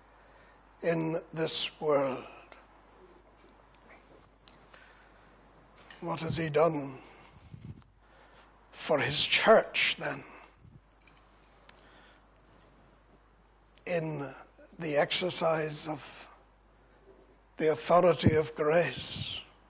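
An elderly man speaks slowly and earnestly into a microphone, with pauses between phrases.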